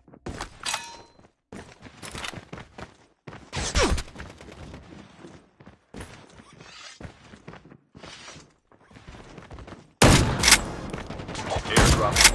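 Footsteps thud across a roof.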